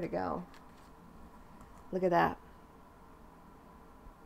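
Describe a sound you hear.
Stiff cards slide and rustle softly against each other.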